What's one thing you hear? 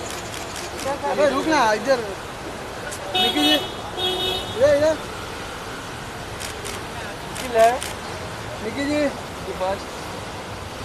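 A young woman speaks briefly and cheerfully nearby.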